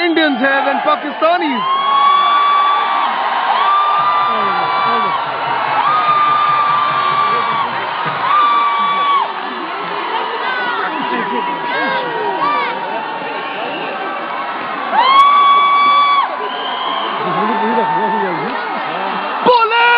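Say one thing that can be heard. A large crowd cheers and chants in long drawn-out calls outdoors.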